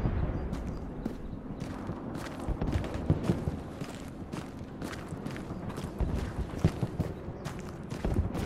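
Footsteps crunch steadily over dry ground and twigs.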